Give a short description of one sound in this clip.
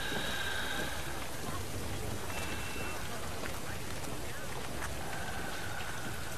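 Rain falls on pavement.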